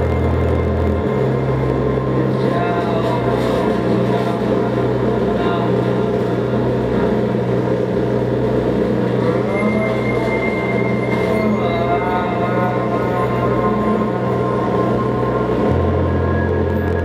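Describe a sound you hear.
Loud music with a heavy, steady bass plays through loudspeakers.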